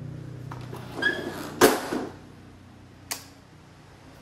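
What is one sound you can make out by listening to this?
A door bumps and clatters as it swings open.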